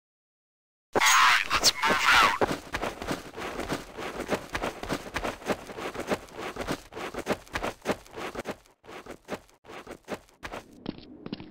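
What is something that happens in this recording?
Footsteps tread quickly on hard ground.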